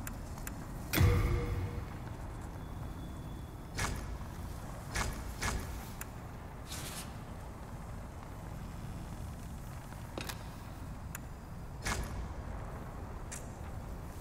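Game menu clicks and soft chimes sound as selections change.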